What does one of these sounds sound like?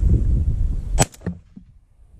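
A shotgun fires a single loud shot outdoors.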